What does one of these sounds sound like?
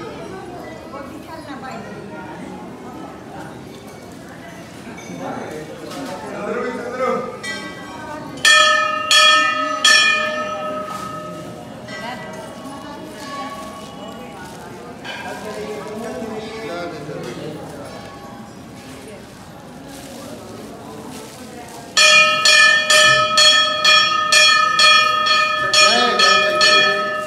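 A crowd of men and women murmur and talk nearby.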